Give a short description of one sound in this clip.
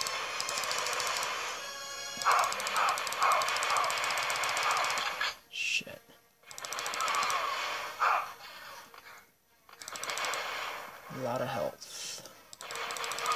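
Video game sound effects play through small laptop speakers.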